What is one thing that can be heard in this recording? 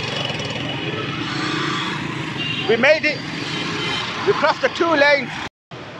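A busy street murmurs with traffic and crowd noise outdoors.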